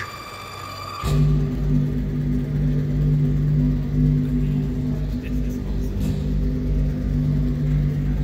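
Deep electronic music throbs loudly in a large echoing hall.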